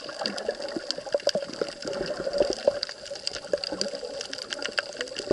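Underwater, the sea crackles and clicks softly around rocks.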